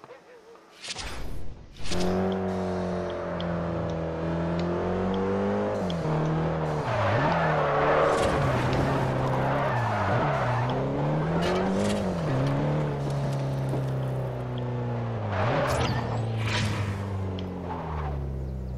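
A car engine roars and revs up and down as a car races.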